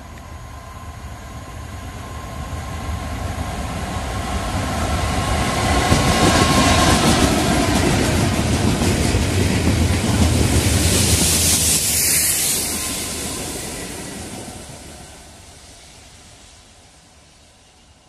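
A Class 66 diesel freight locomotive approaches and passes close by.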